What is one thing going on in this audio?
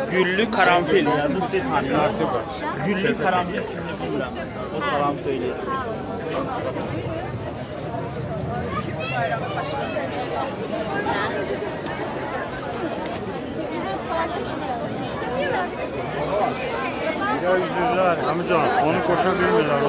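A crowd chatters and murmurs all around outdoors.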